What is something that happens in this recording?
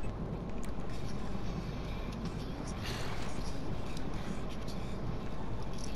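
Water splashes and churns as a vehicle breaks the surface.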